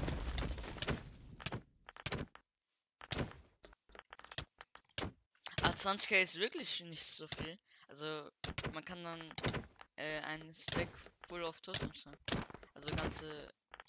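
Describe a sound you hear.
Punches thud repeatedly in a fast video game fight.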